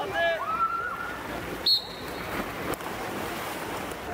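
Swimmers splash in water.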